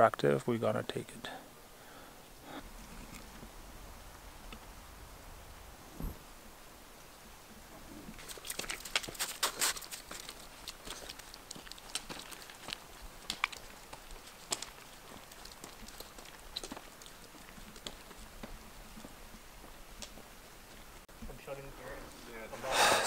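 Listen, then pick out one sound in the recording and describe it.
A young man speaks close by, calmly.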